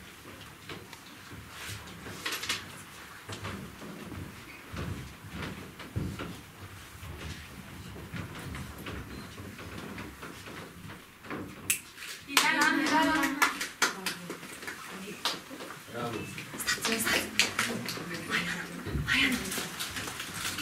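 A crowd of young people murmurs and chatters in a hall.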